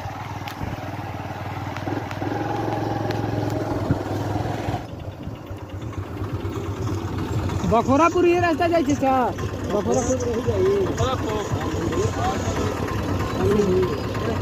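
A vehicle engine rumbles steadily close by.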